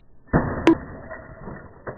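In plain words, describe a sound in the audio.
An axe smashes into a laptop with a sharp crack.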